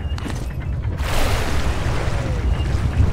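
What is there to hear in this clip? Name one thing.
A body plunges into water with a loud splash.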